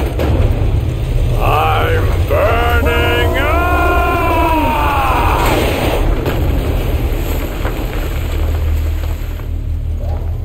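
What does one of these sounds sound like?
A huge machine rumbles deeply and steadily.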